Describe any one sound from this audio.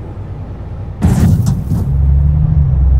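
A car rushes past with a brief whoosh.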